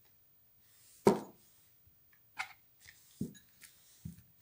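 A plastic lid knocks against a jar.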